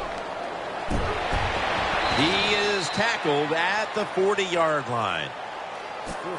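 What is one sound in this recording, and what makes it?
A stadium crowd cheers louder after a play.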